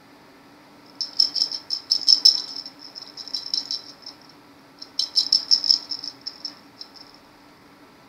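A small bell inside a toy ball jingles in quick bursts.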